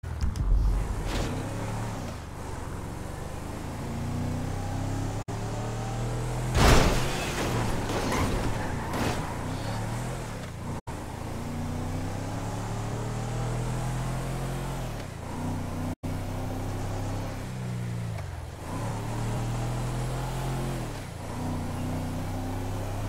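A car engine revs and hums as the car drives.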